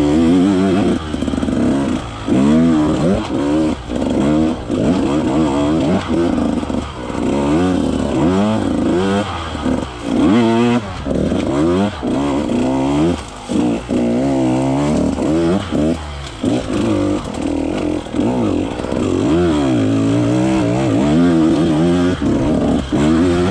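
A dirt bike engine revs up and down close by, rising and falling in pitch.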